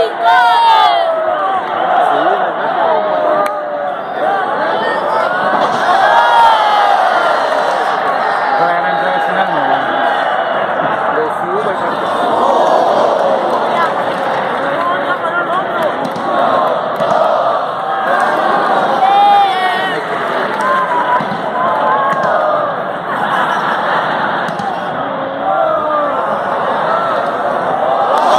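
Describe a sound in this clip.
A large crowd cheers, shouts and whistles throughout in a big echoing arena.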